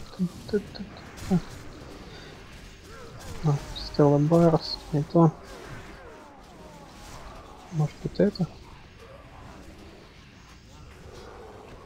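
Weapon blows and spell blasts crash in a fight.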